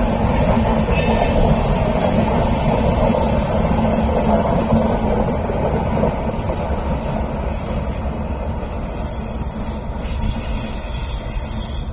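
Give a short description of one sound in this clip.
A train rumbles along the tracks and slowly fades into the distance.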